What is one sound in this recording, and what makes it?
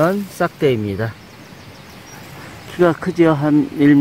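Dry leaves and twigs rustle as a branch is pushed aside.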